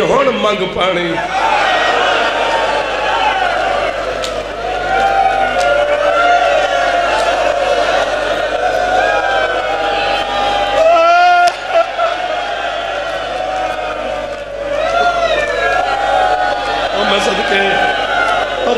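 A young man chants in a long, wailing melody through loudspeakers.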